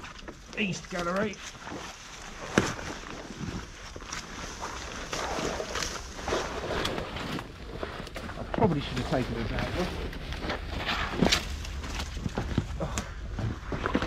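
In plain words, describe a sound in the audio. Branches and leaves rustle as a person pushes through them.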